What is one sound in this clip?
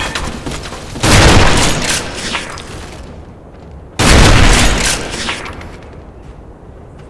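A rifle fires loud, booming shots that ring out and fade.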